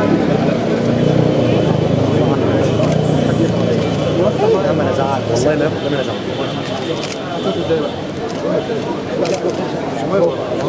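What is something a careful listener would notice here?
Many men chat with one another in an echoing room.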